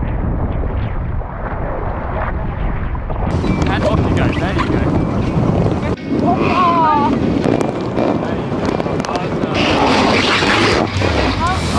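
Waves slosh and splash against the sides of boats.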